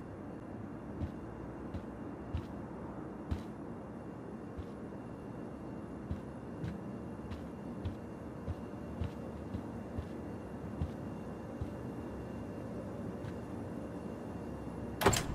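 Footsteps walk slowly across a floor.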